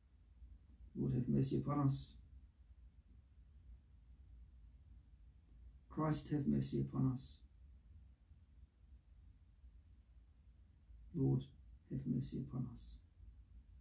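A young man reads aloud calmly, close by, in short phrases with pauses.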